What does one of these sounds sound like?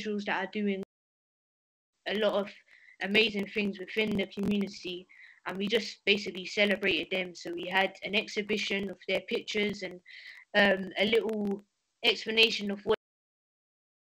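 A young woman speaks with animation, close to a computer microphone.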